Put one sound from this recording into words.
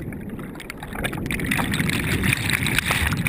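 Water splashes and rushes close by.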